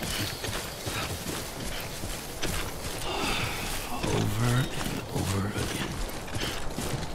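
Footsteps crunch steadily through grass.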